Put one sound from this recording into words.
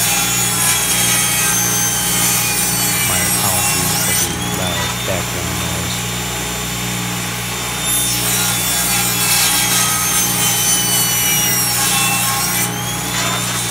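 A table saw blade cuts through wood with a high whine.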